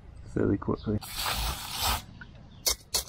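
An aerosol can sprays in a short hissing burst.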